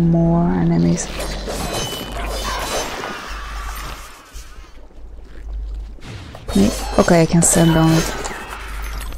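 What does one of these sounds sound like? A blade swishes and slashes rapidly.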